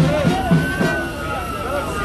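A brass band plays nearby.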